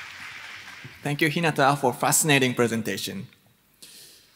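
A young man speaks into a microphone.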